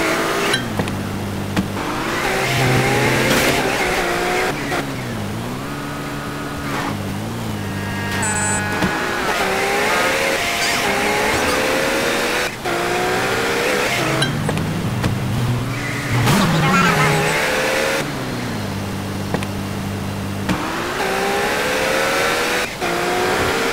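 A car engine hums and revs.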